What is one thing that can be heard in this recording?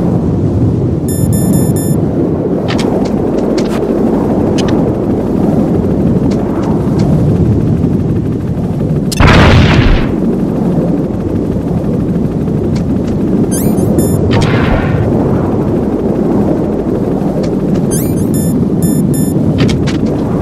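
A game menu beeps as items are switched.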